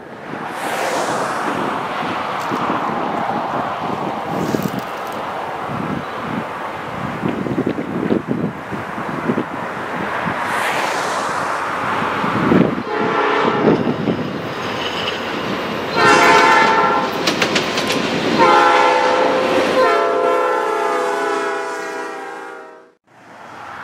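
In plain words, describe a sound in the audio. A freight train rumbles closer and louder.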